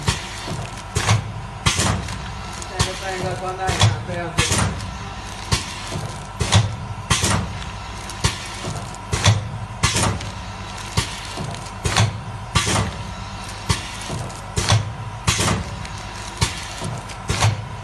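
Sealing jaws of a packing machine clack shut in a steady, repeating rhythm.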